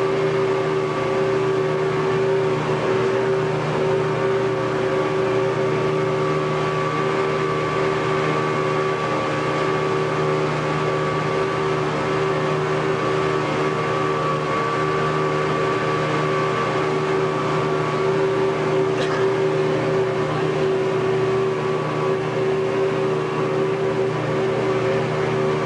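A boat engine drones steadily and loudly.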